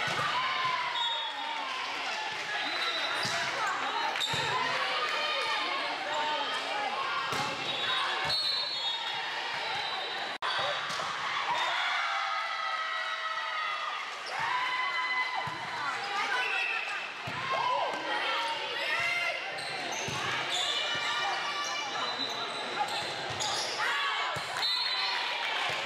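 A volleyball thuds off hands and arms.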